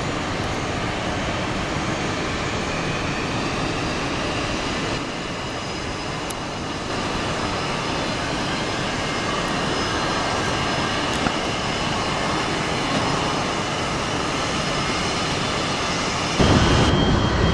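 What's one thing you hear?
Jet engines roar as an airliner speeds down a runway and takes off.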